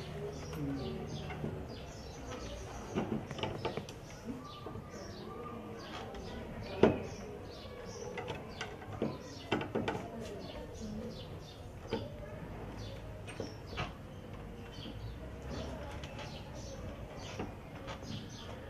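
A metal lock rattles and clicks as a key works in it.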